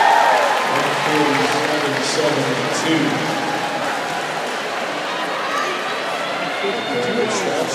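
Voices chatter nearby in the crowd.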